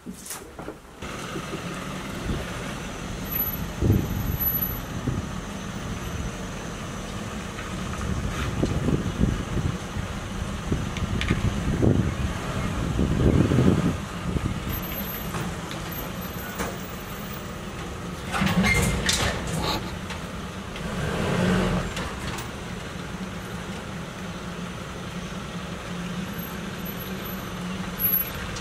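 A truck engine idles steadily nearby outdoors.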